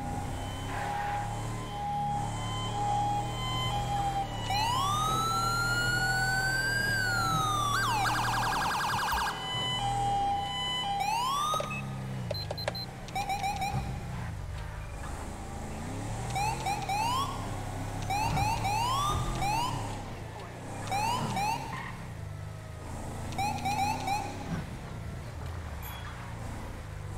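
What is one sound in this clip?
A car engine hums steadily as it drives.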